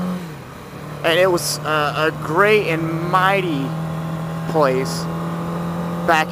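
A motorcycle engine revs up sharply in short bursts.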